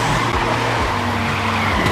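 Tyres screech as a race car drifts.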